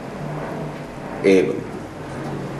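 A man speaks into a phone nearby.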